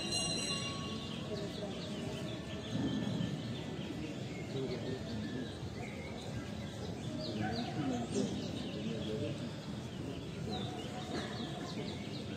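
A small crowd of men and women murmurs and talks quietly outdoors.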